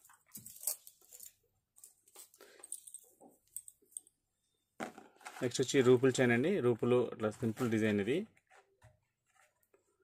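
Beads clink softly as a necklace is handled.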